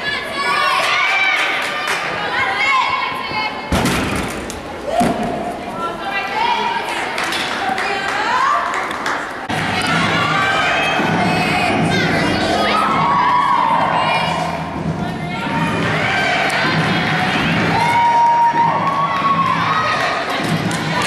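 Young girls chatter and call out nearby in a large echoing hall.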